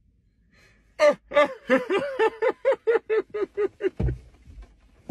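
A young woman laughs loudly in bursts.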